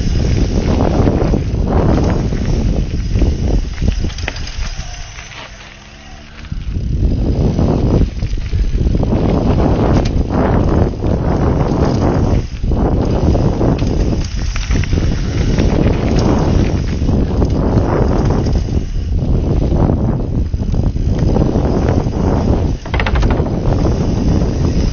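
Bicycle tyres rumble and crunch over a rough dirt trail.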